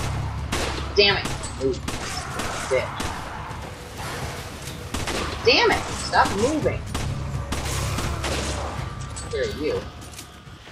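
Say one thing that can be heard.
A rifle fires several shots.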